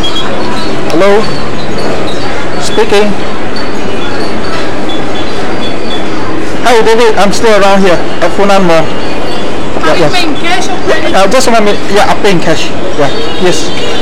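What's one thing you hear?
A young woman talks on a phone close by.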